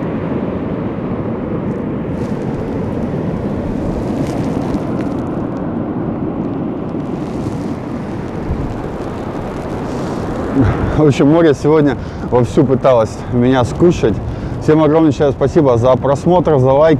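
Wind blows noisily outdoors.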